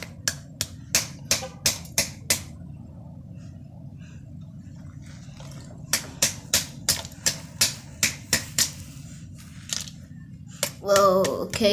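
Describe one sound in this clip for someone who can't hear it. A hammer taps sharply on a hard surface, again and again.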